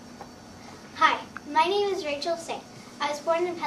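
A young child speaks clearly and with animation, close by.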